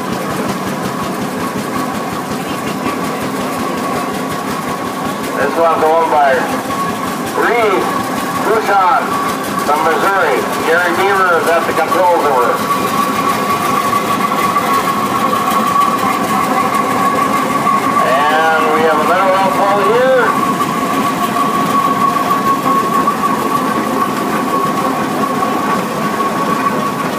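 Heavy steam traction engines rumble and chug past one after another.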